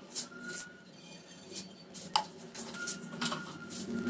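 Seeds sizzle softly in hot oil in a pan.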